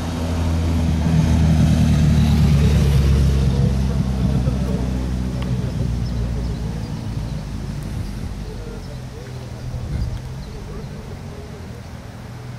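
A car engine hums loudly as a car drives slowly up and past.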